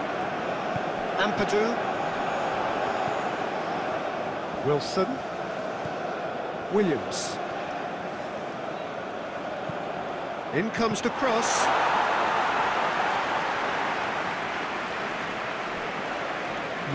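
A large stadium crowd roars and chants steadily, swelling louder for a while.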